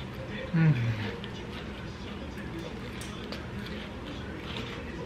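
A young man chews food close by.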